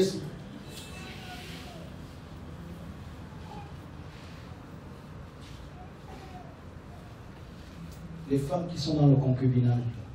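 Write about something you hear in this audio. A man speaks into a microphone, with pauses, loud and close.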